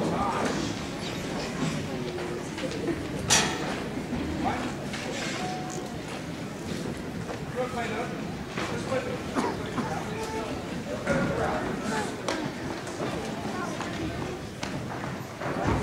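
A vibraphone plays a melody.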